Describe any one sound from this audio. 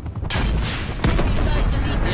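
An attack helicopter explodes.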